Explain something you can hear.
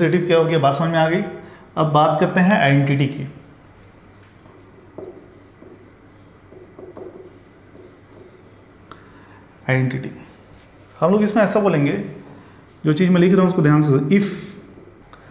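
A man lectures calmly and clearly into a close microphone.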